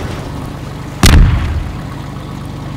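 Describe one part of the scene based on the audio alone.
An explosion booms loudly overhead.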